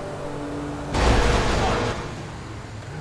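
A car crashes with a loud bang against a truck.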